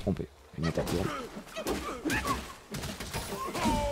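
Metal weapons clash in quick strikes.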